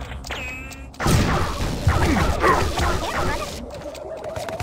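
An electric blast crackles and hisses.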